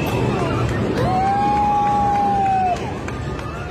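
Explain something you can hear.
A group of young people call out a long, amazed ooh together.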